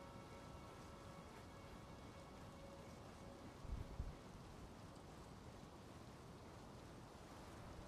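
Footsteps knock softly on ladder rungs during a climb.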